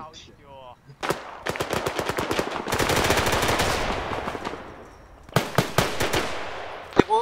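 A rifle fires in rapid bursts of loud sharp shots.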